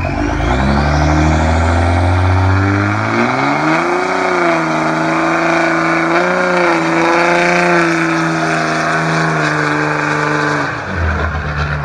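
Tyres squeal as they spin on pavement.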